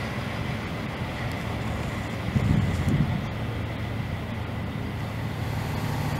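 A diesel locomotive rumbles as it approaches on rails.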